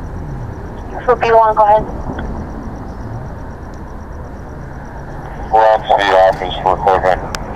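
A man speaks close by, loudly and with animation.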